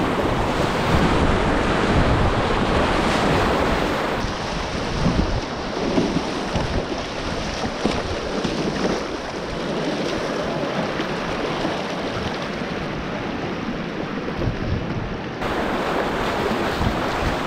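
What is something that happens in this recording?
River rapids rush and roar close by.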